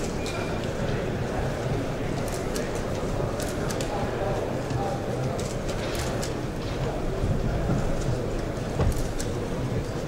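Men talk quietly nearby in a large hall.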